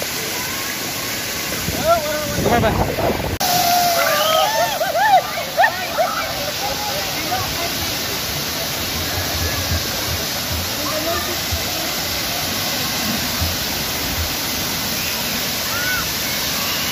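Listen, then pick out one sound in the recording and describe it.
Water sprays and splashes steadily outdoors.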